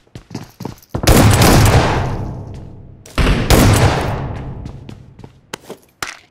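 A grenade explodes with a heavy boom.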